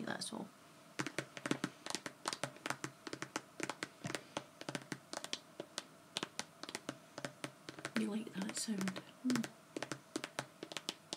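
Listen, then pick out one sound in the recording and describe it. Long fingernails tap and click on a stiff plastic bag.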